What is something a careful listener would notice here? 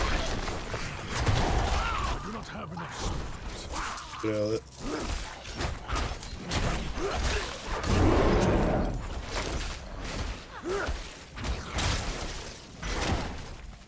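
Magic spells crackle and burst repeatedly.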